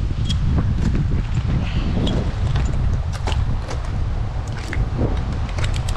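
Boots scrape against rough tree bark.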